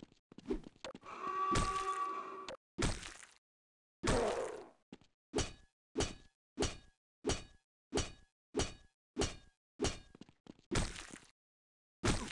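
An axe swishes through the air.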